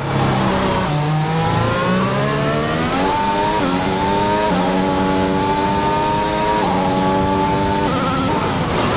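A racing car engine screams as it revs up through the gears.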